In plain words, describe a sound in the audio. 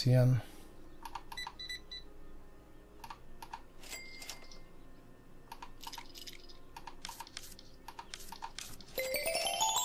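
Coins and bills click into a cash register drawer.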